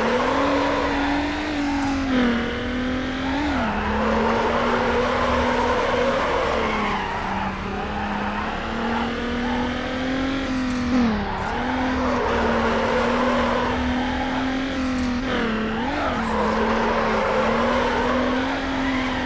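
Tyres screech as a car drifts around corners.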